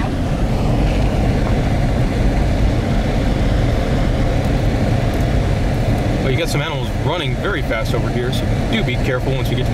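A car rumbles slowly along a gravel road.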